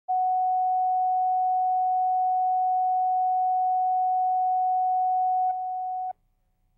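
A steady, high test tone sounds and then cuts off.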